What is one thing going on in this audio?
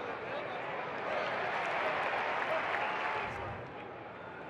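A stadium crowd cheers loudly, then settles.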